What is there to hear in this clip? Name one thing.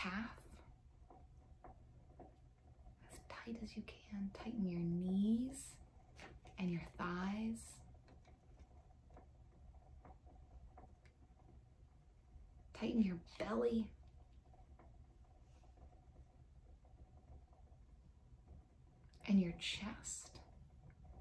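A young woman speaks calmly and warmly, close to a microphone, with pauses.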